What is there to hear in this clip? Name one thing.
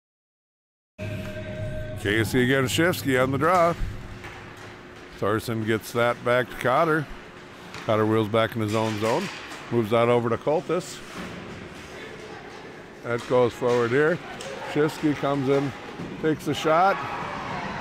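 Ice skates scrape and glide across a rink.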